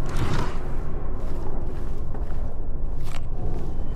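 A drawer slides open.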